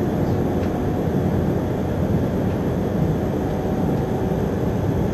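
Wind rumbles steadily over open ground outdoors.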